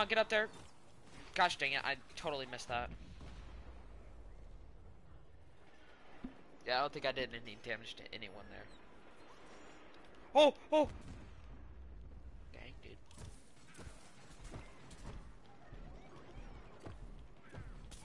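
Cartoonish fiery explosions burst in a video game.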